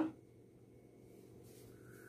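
Flour pours softly into a bowl.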